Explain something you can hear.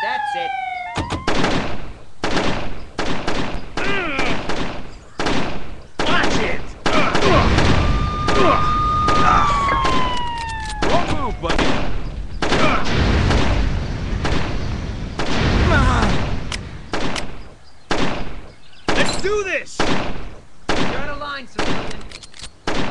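Video game gunshots rattle rapidly from a small phone speaker.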